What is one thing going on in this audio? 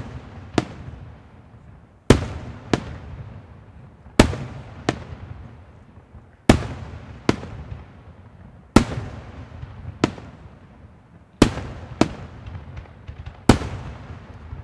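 Fireworks burst with loud booming bangs that echo and fade.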